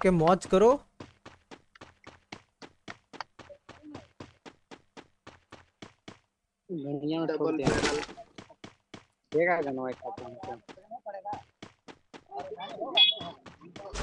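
Quick footsteps thud on wooden planks.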